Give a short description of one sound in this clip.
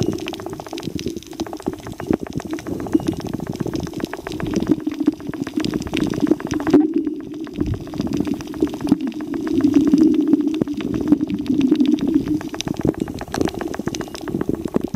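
Air bubbles crackle and pop underwater.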